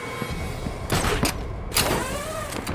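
A grappling line fires with a sharp whoosh.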